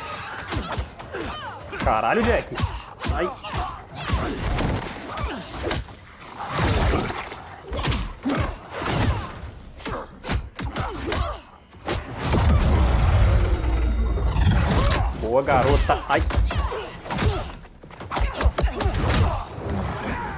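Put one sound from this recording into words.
Blows land with heavy thuds and smacks.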